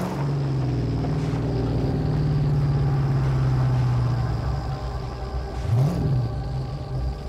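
Tyres crunch over sand and gravel.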